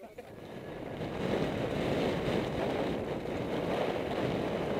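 Bicycle tyres roll over bumpy grass.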